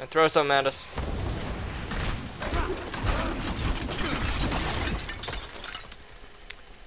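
Magic blasts and crackles in a fierce fight.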